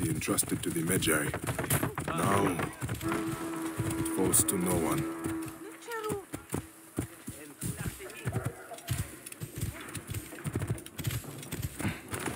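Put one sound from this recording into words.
Horse hooves clop quickly on a dirt road.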